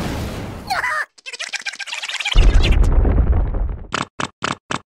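A small cartoon creature screams in alarm.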